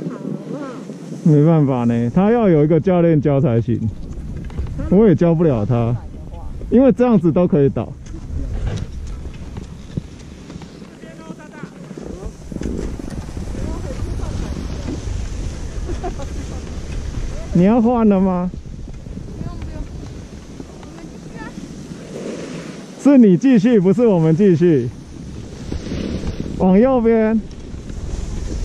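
Skis scrape and hiss over snow.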